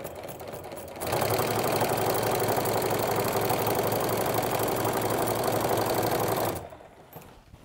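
A sewing machine runs with a steady rapid whirr.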